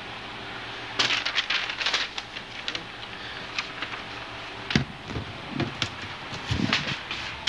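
Cloth rubs and knocks against the microphone up close.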